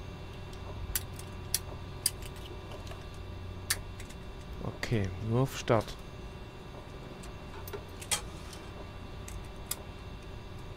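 Switches click on a panel.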